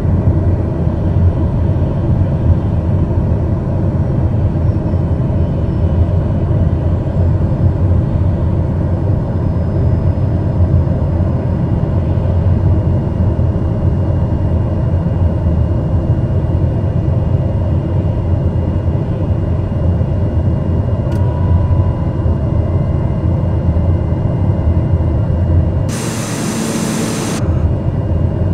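Jet engines drone steadily and loudly in the cabin.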